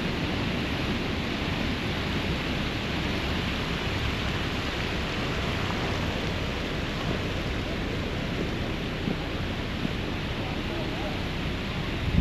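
Water trickles steadily down a cascade of shallow steps.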